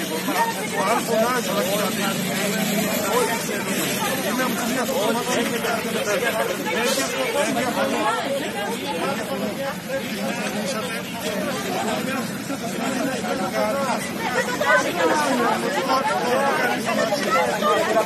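Several men and women talk over one another nearby, outdoors.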